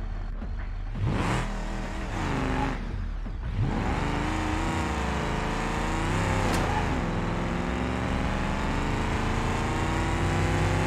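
A car engine revs hard and roars as the car speeds up.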